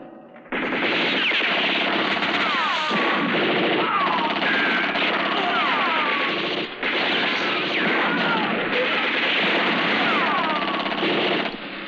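Bullets ricochet with whining zips.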